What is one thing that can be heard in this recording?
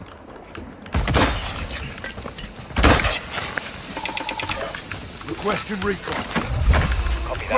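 A smoke grenade pops and hisses out smoke.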